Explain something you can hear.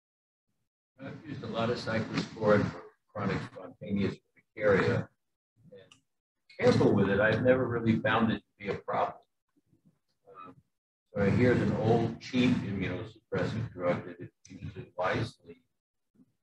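A middle-aged man speaks calmly through an online call.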